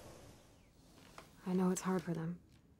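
Another young woman speaks softly and hesitantly, close by.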